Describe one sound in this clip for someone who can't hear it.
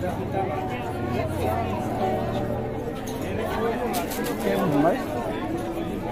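A crowd of men and women talks and calls out close by.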